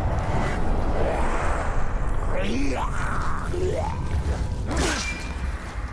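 A sword strikes in a scuffle.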